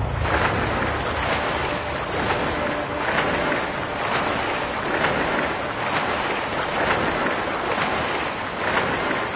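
Footsteps splash steadily through shallow water.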